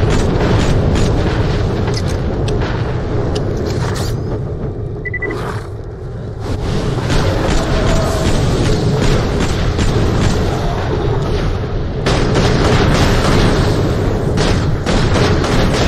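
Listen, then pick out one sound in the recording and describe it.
Fiery explosions boom and crackle.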